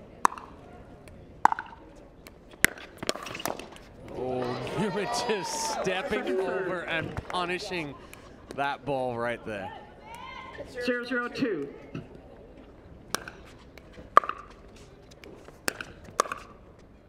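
Pickleball paddles strike a ball with sharp pops.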